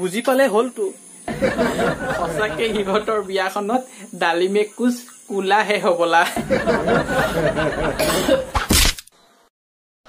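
A young man speaks in a high, put-on woman's voice with animation, close by.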